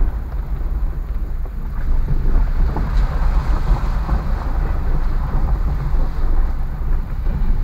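Tyres splash through muddy water.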